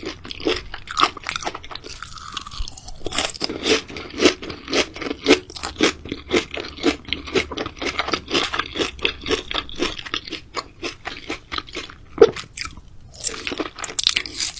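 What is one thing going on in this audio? Chopsticks clack against a dish.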